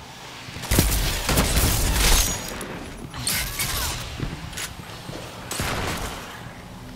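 Gunshots crack in loud, rapid bursts.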